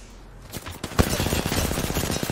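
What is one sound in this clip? A gun fires rapid shots in a fast burst.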